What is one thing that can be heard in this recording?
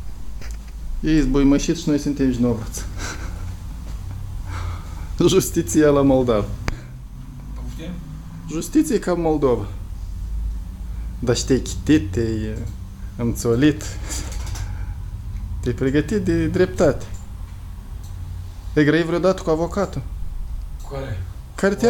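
A middle-aged man speaks nearby in short bursts.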